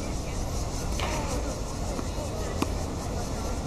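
A tennis racket strikes a ball outdoors.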